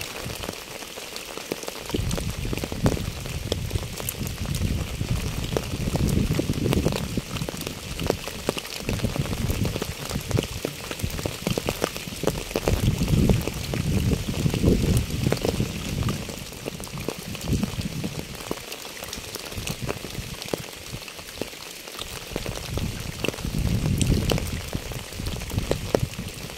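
Rain patters steadily on a wet path and puddles outdoors.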